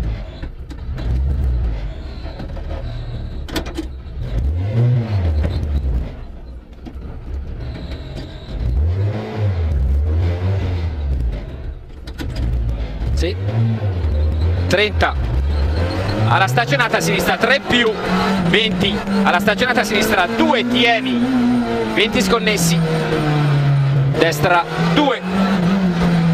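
A four-cylinder rally car engine revs up and down through the gears.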